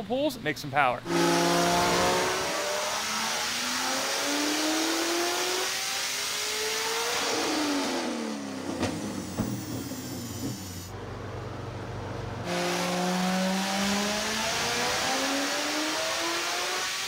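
A powerful car engine revs hard, climbing through the gears with a loud roar.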